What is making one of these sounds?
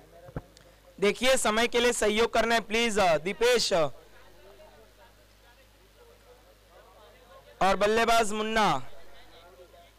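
A male commentator speaks excitedly through a microphone.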